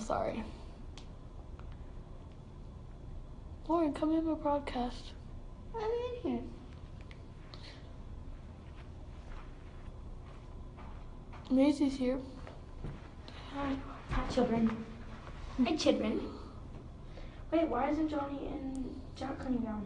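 A young girl speaks casually and close up in short bursts.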